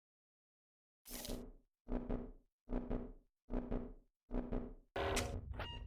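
A wrist strains and tugs repeatedly against a restraint strap.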